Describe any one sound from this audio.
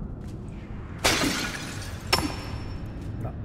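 A clay pot cracks and shatters.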